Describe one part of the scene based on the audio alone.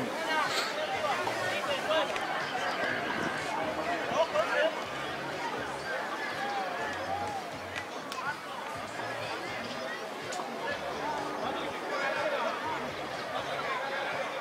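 A crowd of spectators chatters and calls out outdoors.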